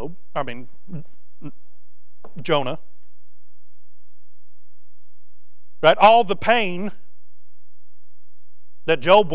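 A man preaches through a microphone, speaking in bursts with long pauses.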